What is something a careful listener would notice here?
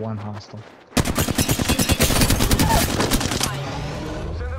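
A gun fires rapidly in a long burst.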